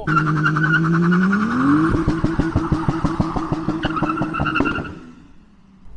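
A car engine revs hard and then cuts off.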